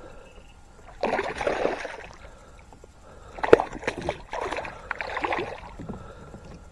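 A fish thrashes and splashes at the water's surface close by.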